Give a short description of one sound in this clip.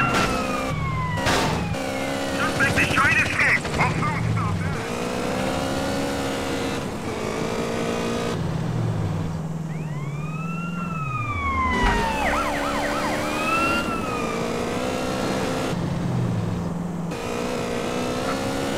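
A motorcycle engine revs and roars steadily.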